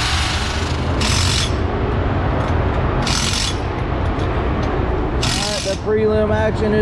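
An impact wrench rattles in short bursts.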